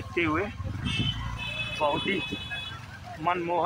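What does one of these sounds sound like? A car horn honks briefly.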